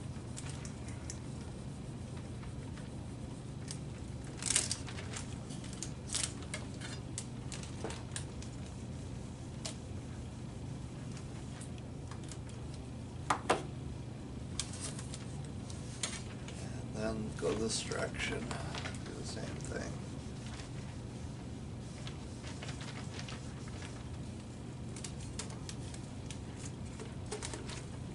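Plastic film crinkles and crackles as it is handled.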